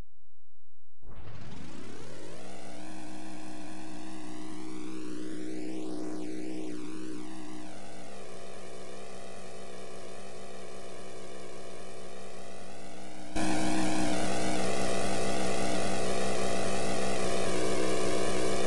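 A truck engine drones steadily, louder toward the end.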